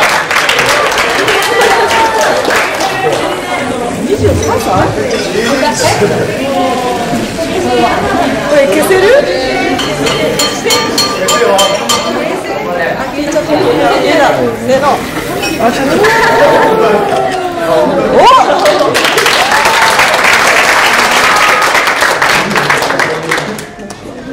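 A group of women talk and laugh nearby.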